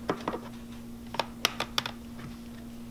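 Plastic trays clatter as they are set down on a counter.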